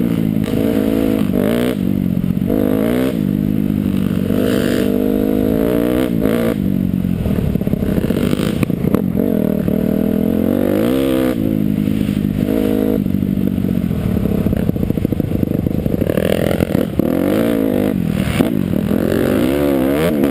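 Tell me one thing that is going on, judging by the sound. A dirt bike engine roars up close, revving up and down.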